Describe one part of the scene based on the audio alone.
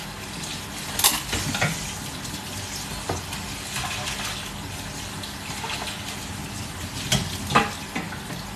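A metal bowl clanks against a sink.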